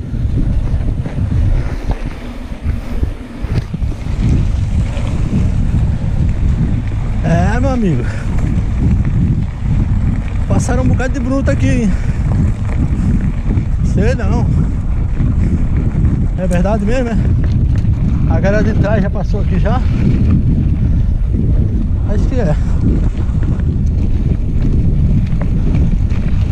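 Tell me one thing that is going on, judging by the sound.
Bicycle tyres roll and crunch over a rough dirt road.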